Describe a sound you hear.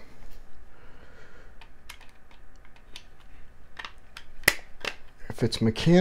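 A screwdriver clicks against a hard drive's metal casing.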